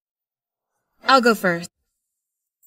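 Another young woman speaks briefly in a soft voice.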